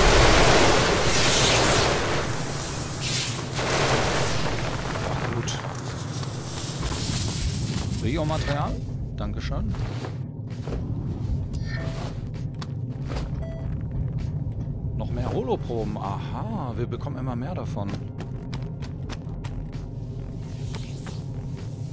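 A strong wind roars steadily outdoors.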